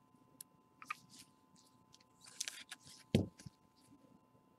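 Gloved hands rustle and crinkle plastic wrapping.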